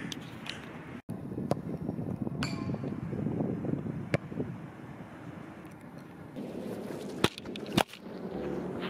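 A soccer ball is kicked with a thud.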